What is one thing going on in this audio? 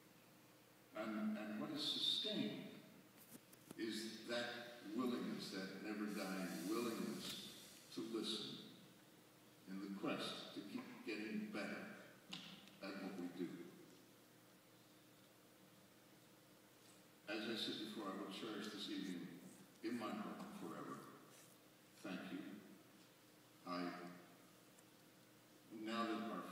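A man speaks calmly through a microphone and loudspeakers, echoing in a large hall.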